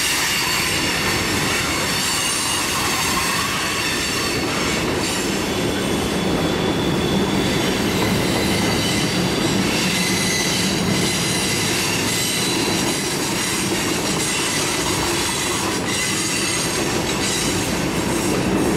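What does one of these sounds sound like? Train wheels squeal and clatter on the rails.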